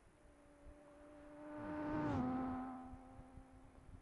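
Another car's engine roars past, its pitch dropping as it goes by.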